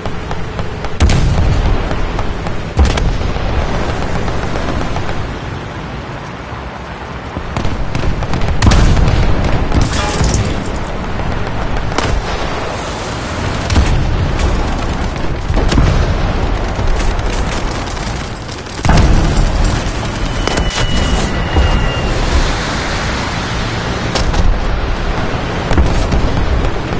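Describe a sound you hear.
Tank cannons fire with loud booms.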